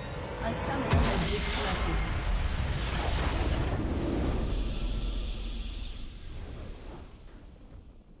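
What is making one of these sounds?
A triumphant game fanfare swells and slowly fades.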